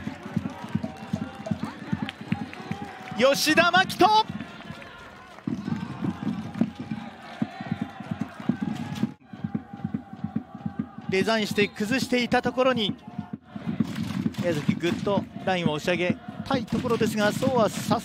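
A drum beats steadily among a crowd of supporters.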